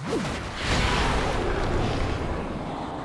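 A magic spell bursts with a bright crackling whoosh.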